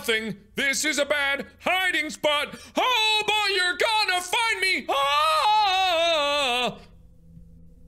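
A young man screams loudly and wildly into a microphone.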